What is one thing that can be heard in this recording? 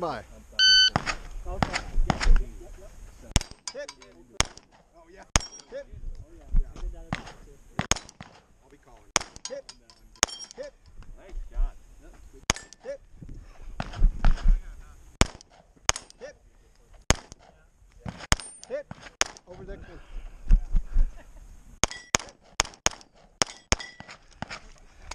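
A pistol fires shot after shot outdoors, each bang sharp and echoing.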